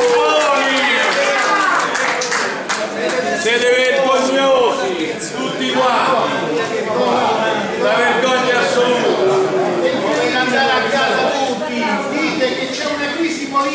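A man shouts with agitation close by.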